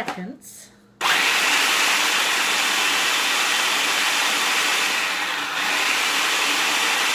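A blender whirs loudly and steadily.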